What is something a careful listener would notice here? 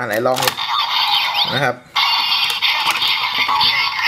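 Plastic parts click as a toy is moved by hand.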